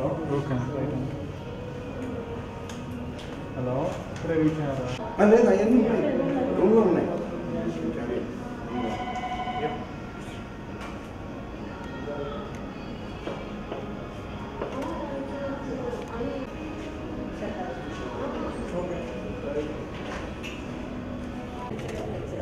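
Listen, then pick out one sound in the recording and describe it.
Several adults chat nearby.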